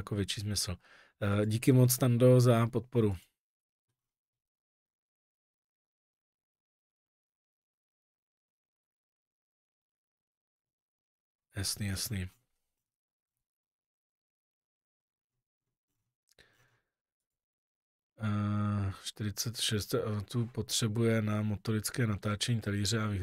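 A middle-aged man talks calmly into a close microphone, with long pauses.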